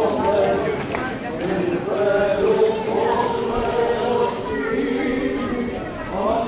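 A group of men chant a slow hymn together outdoors.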